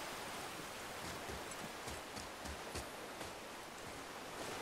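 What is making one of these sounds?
Heavy footsteps thud on stone.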